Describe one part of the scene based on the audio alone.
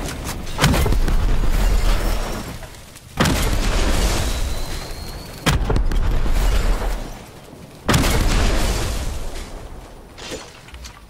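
Loud explosions boom and rumble, one after another.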